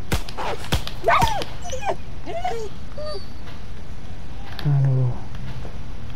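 A dog yelps and whimpers in pain.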